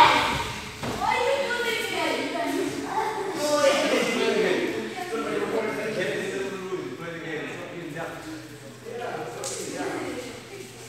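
A man instructs the children in a raised voice.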